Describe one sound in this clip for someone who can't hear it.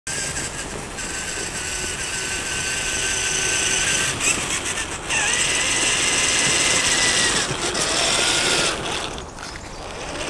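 A small electric motor whines as a toy car drives closer over a dirt path.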